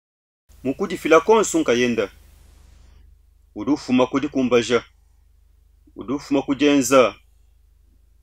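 A middle-aged man speaks with animation, close to a microphone, in short bursts.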